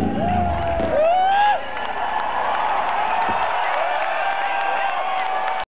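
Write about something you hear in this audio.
A large crowd cheers and screams loudly at a concert, echoing in a large hall.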